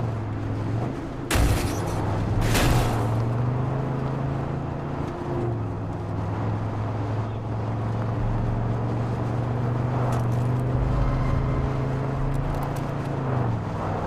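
A van engine hums steadily while driving.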